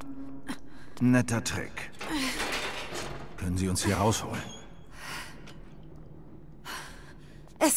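A young woman breathes hard, close by.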